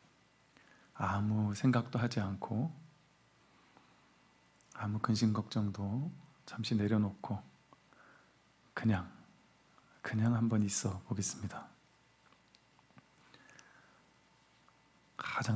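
A man chants in short, steady-pitched phrases with a light echo.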